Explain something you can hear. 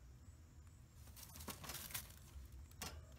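A rabbit munches and crunches on leafy greens close by.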